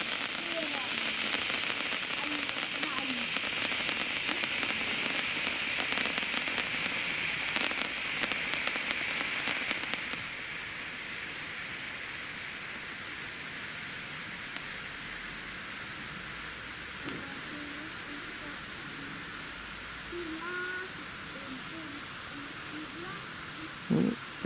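Fountain fireworks hiss and crackle steadily outdoors.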